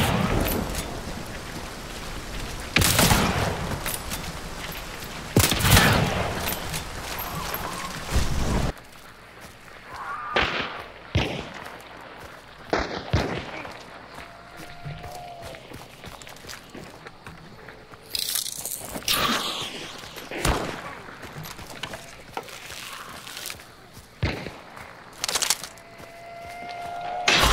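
Footsteps crunch on dirt and leaves.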